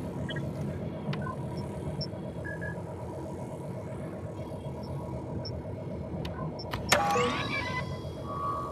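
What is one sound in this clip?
Short electronic beeps chirp from a control panel.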